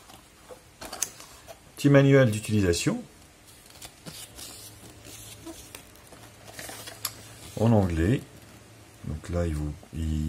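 Paper crinkles and rustles as it is handled and unfolded.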